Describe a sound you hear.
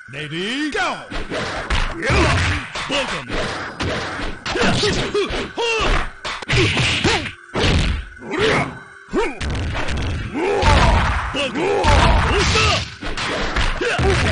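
Fighting game sound effects of punches, kicks and thuds play in quick bursts.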